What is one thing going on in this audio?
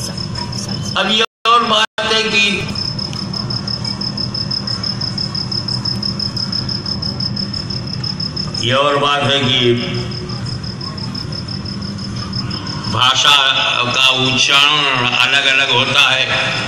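A man's voice sings through loudspeakers, echoing outdoors.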